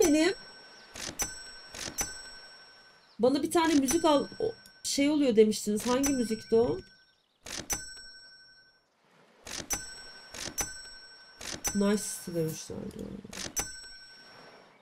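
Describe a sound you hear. Short electronic clicks chime as a phone menu is scrolled.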